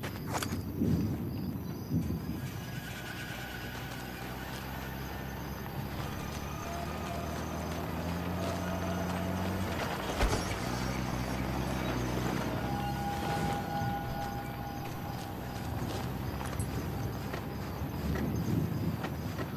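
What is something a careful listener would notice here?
Footsteps shuffle softly over snowy ground.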